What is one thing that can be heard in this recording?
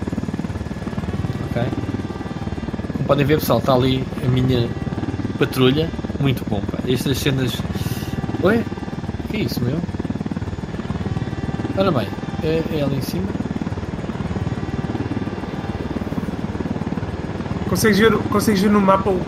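A helicopter's rotor drones steadily close by.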